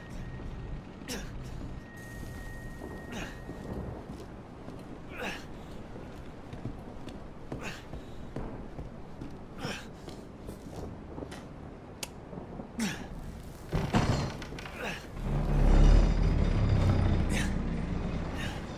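Footsteps thud slowly on creaking wooden floorboards and stairs.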